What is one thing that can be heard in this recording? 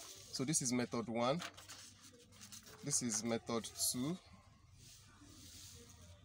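Paper rustles as a sheet is turned over.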